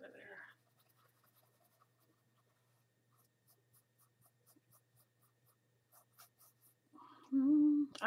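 A paintbrush dabs and brushes softly on canvas.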